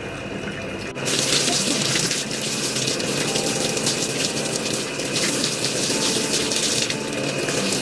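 Water runs and splashes from a hose.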